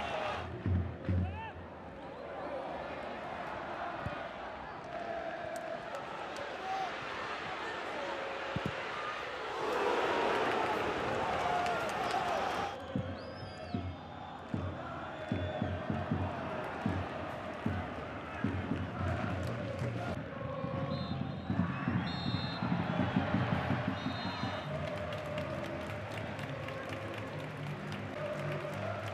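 A large stadium crowd murmurs and chants steadily.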